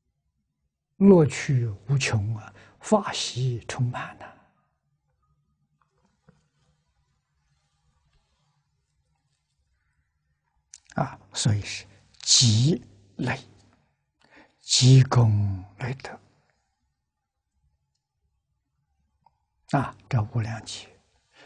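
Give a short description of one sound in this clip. An elderly man speaks calmly and slowly into a close microphone, with long pauses.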